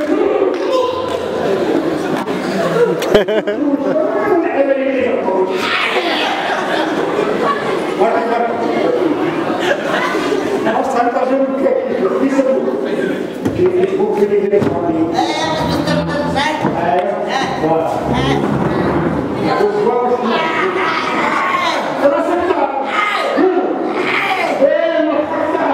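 A young man speaks with animation through a microphone and loudspeaker in an echoing hall.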